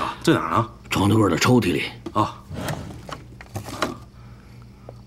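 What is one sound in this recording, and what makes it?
A middle-aged man asks questions urgently, close by.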